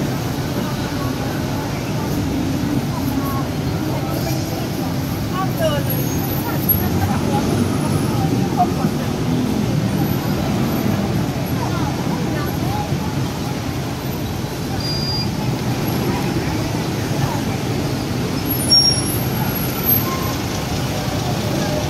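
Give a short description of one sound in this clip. A crowd of people chatters and bustles outdoors.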